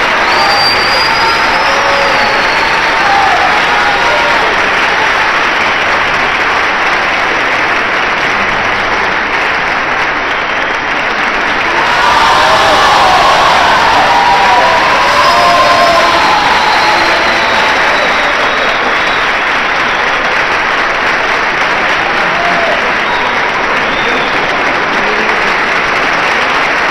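A large audience applauds loudly in a big echoing hall.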